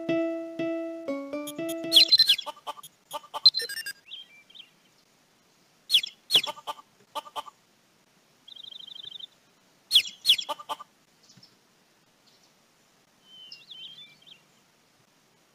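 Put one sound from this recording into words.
Short electronic chimes and clicks play.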